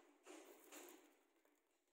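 A fire flares up with a soft whoosh.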